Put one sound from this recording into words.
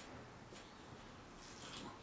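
A man gulps from a bottle.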